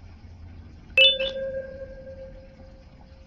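A bright chime rings out once.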